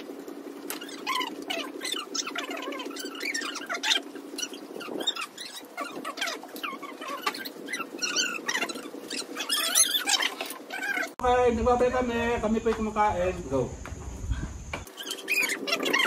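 Several people talk and laugh casually close by.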